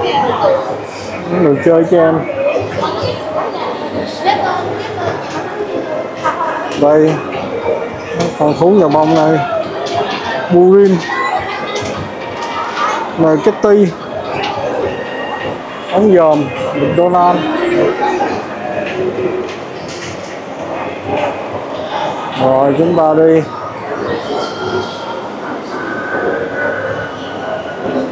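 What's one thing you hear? A crowd of shoppers murmurs and chatters in a large echoing hall.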